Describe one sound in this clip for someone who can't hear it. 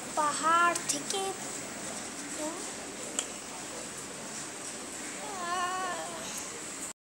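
A young boy talks close to a microphone.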